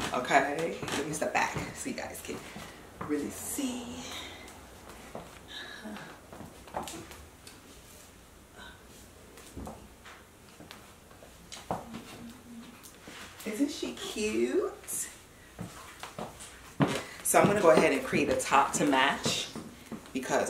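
High heels click on a tiled floor.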